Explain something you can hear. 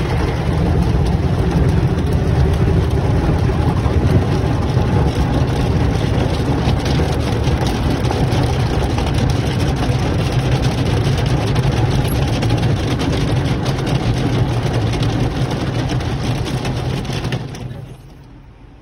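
Water sprays hard against a car's windows and roof, heard from inside the car.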